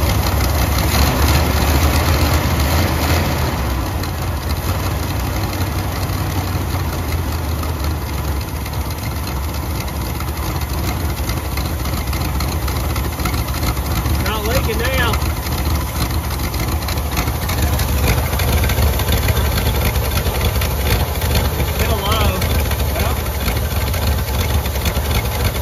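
An engine idles with a steady low rumble.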